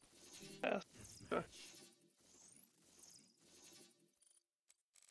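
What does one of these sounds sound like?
Sci-fi whooshes sweep up as game characters beam in.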